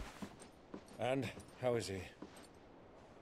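A man speaks briefly and calmly.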